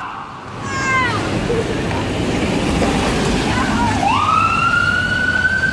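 Tyres hiss on a wet road as an ambulance drives past.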